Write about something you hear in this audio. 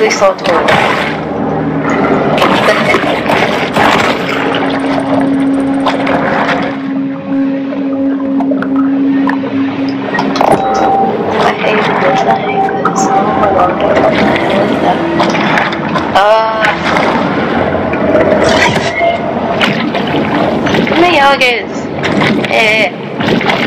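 Water rushes and bubbles as a shark swims underwater.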